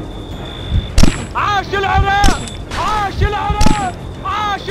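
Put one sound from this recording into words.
A sniper rifle fires sharp single shots.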